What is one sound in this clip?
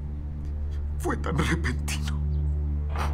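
A middle-aged man sobs.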